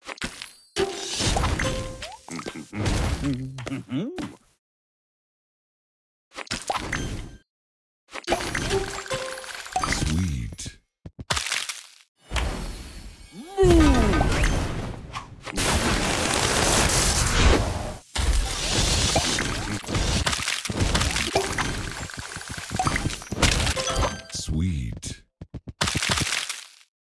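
Game sound effects chime and pop as candies match and burst.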